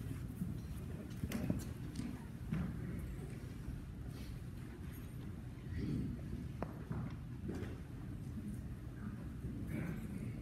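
Footsteps and soft shuffling sound in a large room.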